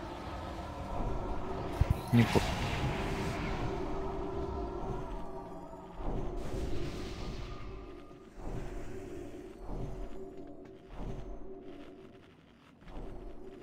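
Magic spells whoosh and crackle in repeated bursts.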